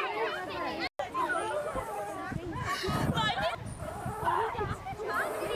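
A girl laughs close by.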